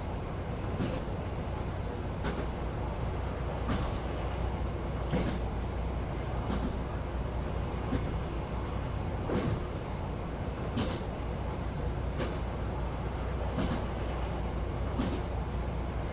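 Train wheels click rhythmically over rail joints.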